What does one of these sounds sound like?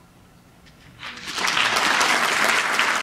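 An audience bursts into loud applause and cheers.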